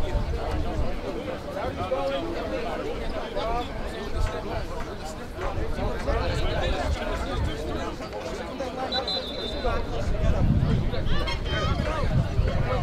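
A crowd of boys and men talk and shout at once outdoors.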